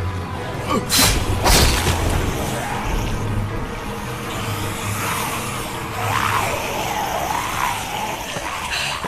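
Zombies growl and moan close by.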